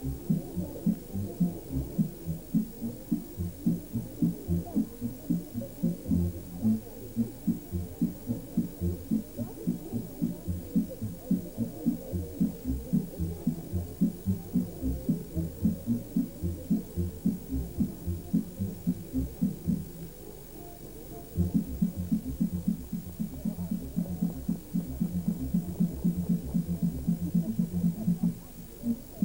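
Dancers stamp their feet in a quick, steady rhythm outdoors.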